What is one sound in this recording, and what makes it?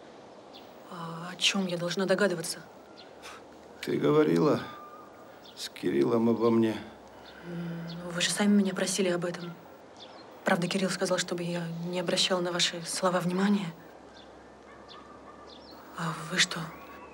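A young woman speaks calmly and softly nearby.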